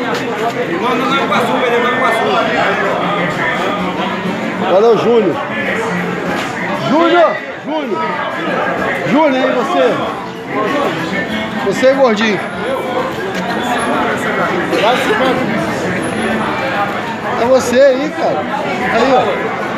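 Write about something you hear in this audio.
A crowd of young men talks and shouts loudly close by.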